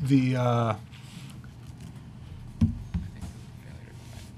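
Paper rustles as a man flips through pages.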